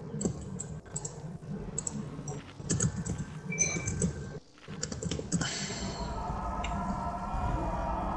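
Game spell effects crackle and clash in a battle.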